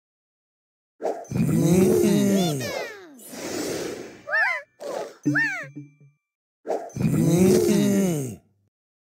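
Bright game sound effects burst and chime as pieces clear.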